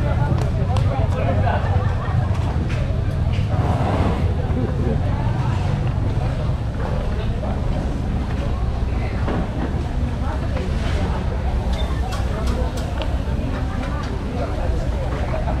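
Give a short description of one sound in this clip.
A crowd of people chatters at a distance.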